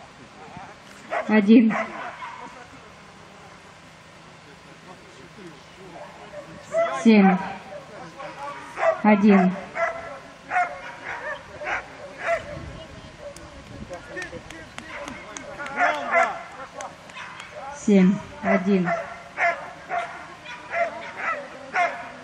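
A man calls out commands to a dog, loud and urgent, outdoors.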